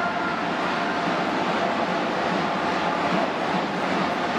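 A cheering squad chants and sings in unison.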